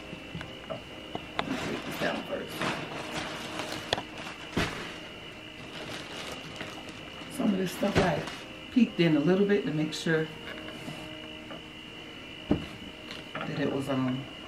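Cardboard boxes rustle and thump as they are moved.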